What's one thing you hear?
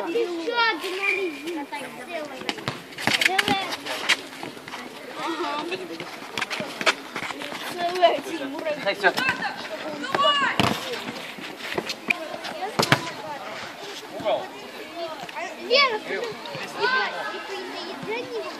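Boys shout to each other during a football game outdoors.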